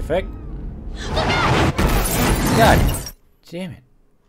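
Glass shatters loudly in a crash.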